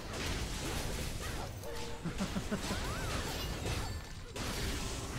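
Magic spells burst and crackle with a whooshing roar.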